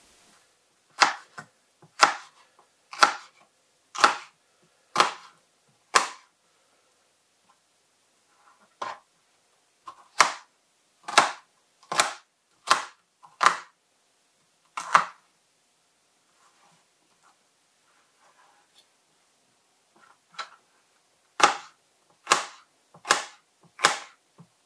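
A knife chops through a pepper onto a wooden board in sharp, regular knocks.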